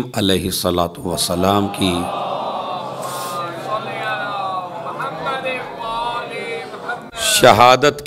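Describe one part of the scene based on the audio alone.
A man speaks with feeling into a microphone, heard through a loudspeaker.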